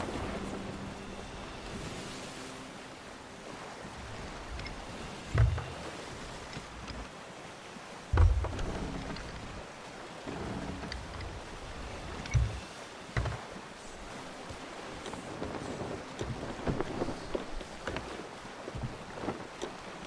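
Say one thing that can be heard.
Ocean waves wash and splash against a wooden ship's hull.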